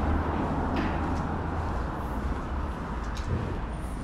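A car drives out of an underpass and passes close by.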